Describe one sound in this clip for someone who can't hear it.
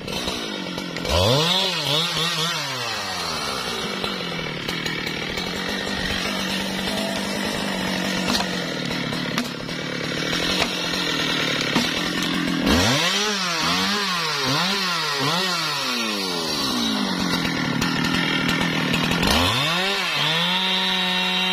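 A chainsaw engine idles and revs up and down in quick bursts.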